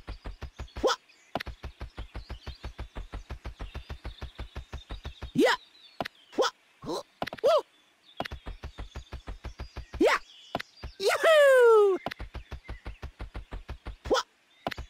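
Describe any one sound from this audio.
A cartoon character's quick footsteps patter rapidly on grass.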